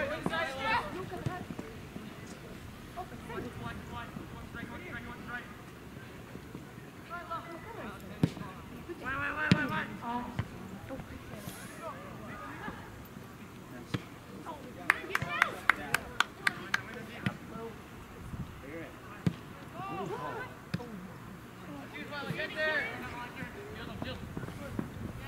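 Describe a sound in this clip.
Spectators shout and cheer outdoors, nearby.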